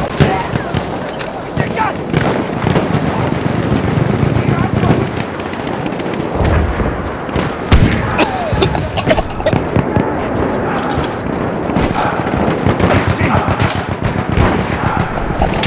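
A rifle fires in sharp cracks.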